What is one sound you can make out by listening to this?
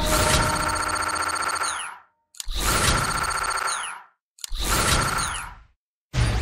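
Rapid electronic ticks tally up in short bursts, each ending with a rising chime.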